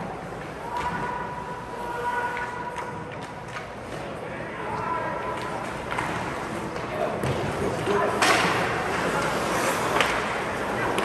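Hockey sticks click sharply against a puck.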